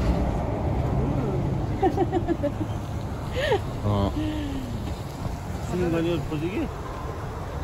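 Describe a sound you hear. A woman talks nearby in a relaxed, chatty way.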